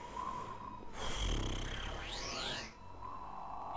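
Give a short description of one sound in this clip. A magic spell crackles and whooshes with a sweeping tone.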